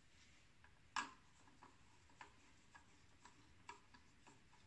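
A screwdriver clicks and scrapes against metal screws, close by.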